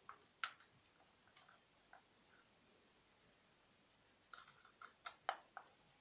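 A small screwdriver scrapes against plastic.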